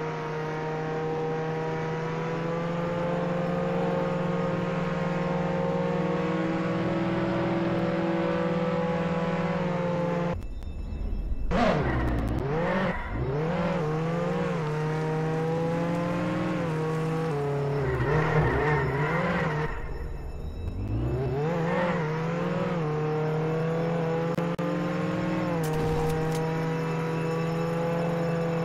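A car engine hums steadily at speed, revving up and down when the car slows and turns.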